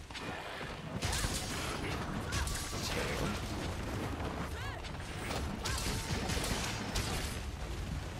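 Heavy blades strike a beast with loud, sharp metallic impacts.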